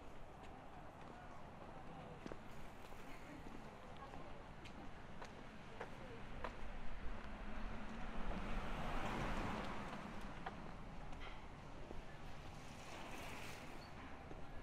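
Street noise hums outdoors.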